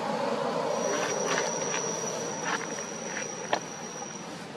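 A baby monkey whimpers and squeaks softly close by.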